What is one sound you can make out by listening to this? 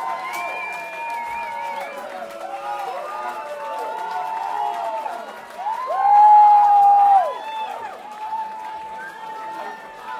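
A large crowd cheers, whoops and shouts loudly.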